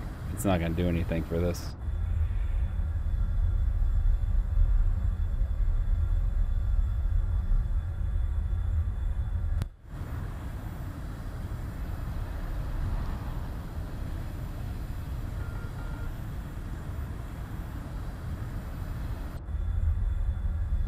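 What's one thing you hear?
A jet engine roars steadily with a deep rumble.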